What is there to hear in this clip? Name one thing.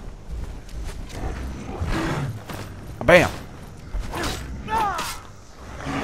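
A beast growls and snarls.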